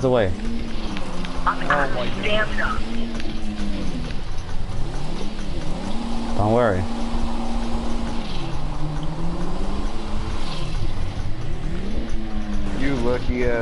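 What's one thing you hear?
A car engine revs up and down as the car drives over rough ground.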